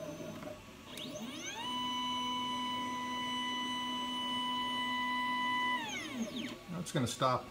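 A stepper motor whines, rising in pitch, holding a steady tone, then falling away.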